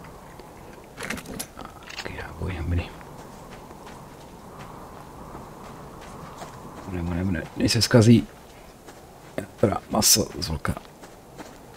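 A man talks into a close microphone in short bursts.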